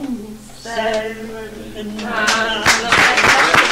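An elderly woman speaks cheerfully close by.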